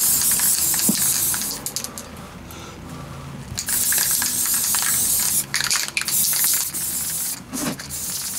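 An aerosol spray can hisses in bursts.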